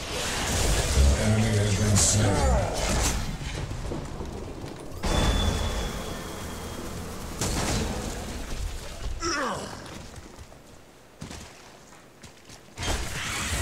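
Game sound effects of fighting and magic blasts ring out.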